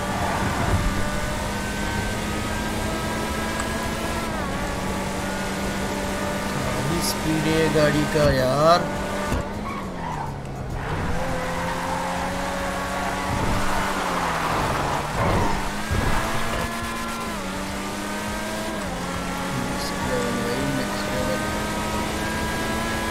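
A sports car engine roars steadily, rising and dropping in pitch as it shifts gears.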